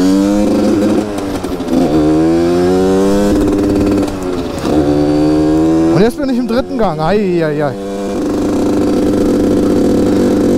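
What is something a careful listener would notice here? A motorcycle engine revs up and down as the bike rides along.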